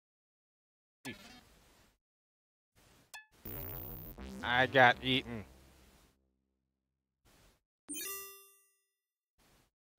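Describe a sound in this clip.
Electronic game sound effects beep and chime.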